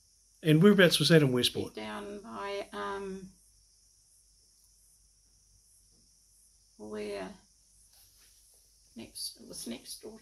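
An elderly woman speaks calmly and close by, with pauses.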